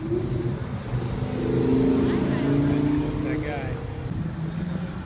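An Audi R8 V10 sports car accelerates past.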